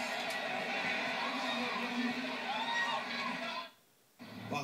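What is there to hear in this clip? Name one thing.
A large crowd cheers and roars in an arena, heard through a television speaker.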